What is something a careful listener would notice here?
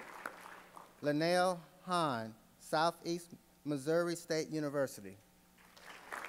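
A man speaks slowly and clearly through a microphone in a large hall.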